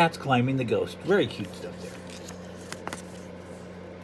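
A paper page turns.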